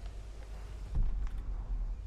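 A heavy thud lands on wood.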